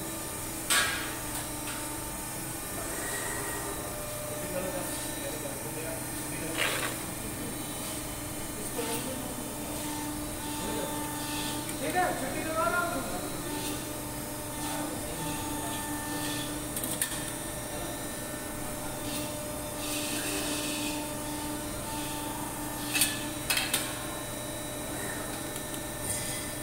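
Thin metal sheets rattle and clink in a man's hands.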